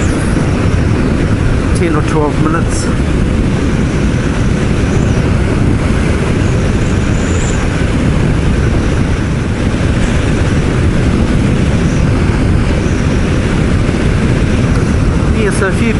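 A motorcycle engine hums steadily on the highway.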